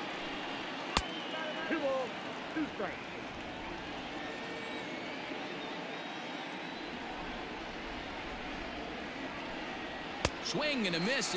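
A ball smacks sharply into a catcher's mitt.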